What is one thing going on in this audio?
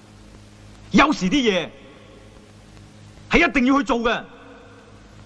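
A second man answers with animation.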